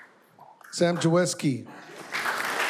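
A woman speaks into a microphone in an echoing room.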